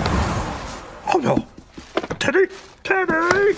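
A man grunts and mutters in surprise.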